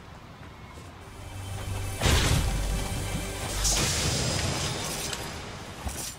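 A chest opens with a bright, shimmering chime.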